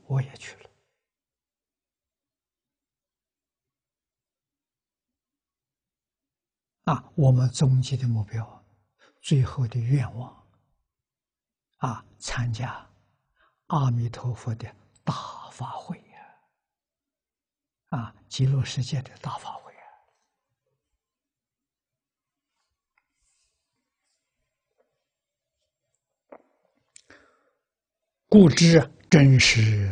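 An elderly man speaks calmly, with pauses, close to a clip-on microphone.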